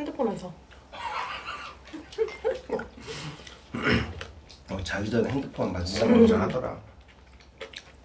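A young man laughs and talks close by.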